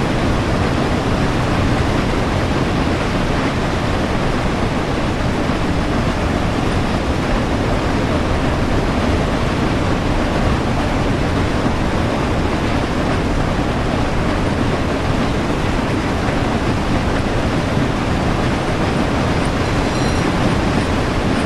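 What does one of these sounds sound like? A steam locomotive rumbles steadily along the track.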